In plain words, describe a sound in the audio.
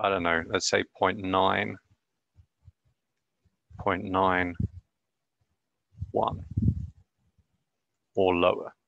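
A young man speaks in short bursts close to a microphone, as on an online call.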